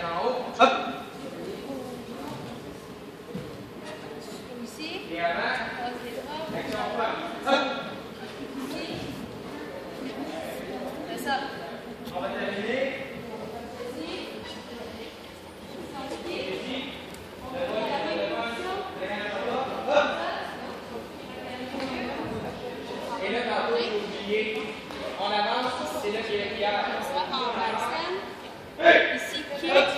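Children chatter and murmur in a large echoing hall.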